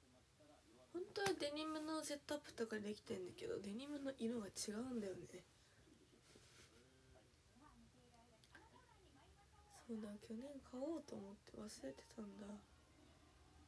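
A young woman speaks calmly close by.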